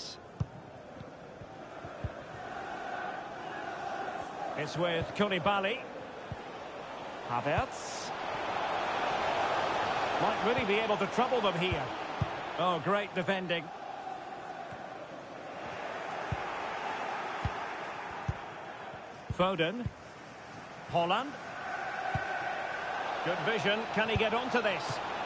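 A stadium crowd roars steadily, swelling and fading.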